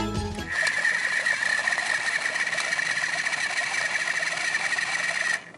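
A small toy blender motor whirs with a high, steady buzz.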